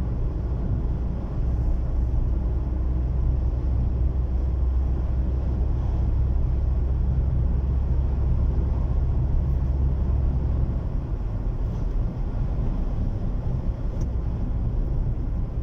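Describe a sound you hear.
A car rumbles low and steady as it drives, heard from inside.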